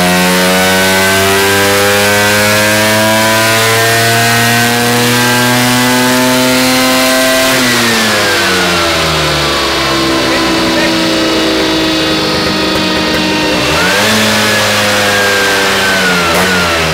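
A scooter engine revs hard, then drops to idle and revs up again.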